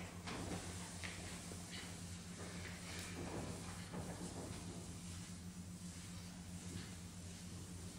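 A cloth wipes a blackboard.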